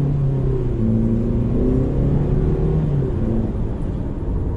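A car engine drones steadily.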